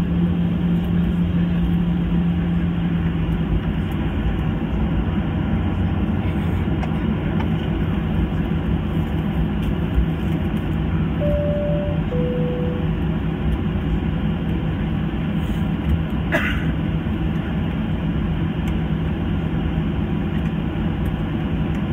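A jet engine hums and roars steadily close by.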